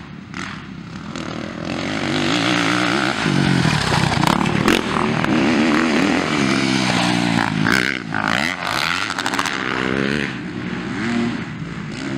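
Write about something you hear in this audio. A single dirt bike engine revs up and down as it rides by.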